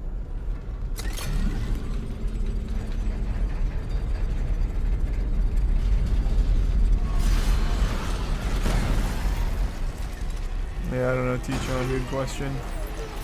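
A deep mechanical hum drones steadily.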